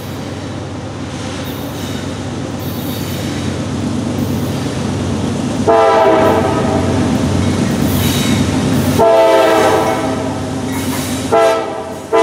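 A diesel freight train approaches, its engine rumbling louder.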